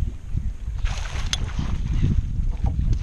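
A fish splashes in the water.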